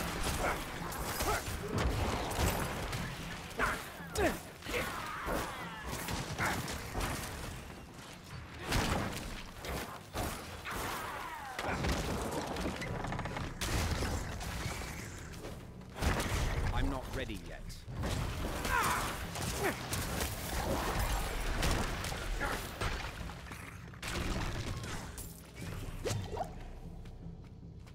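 Magic blasts burst and crackle.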